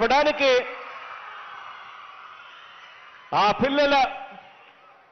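A man speaks with emphasis into a microphone over loudspeakers in a large echoing space.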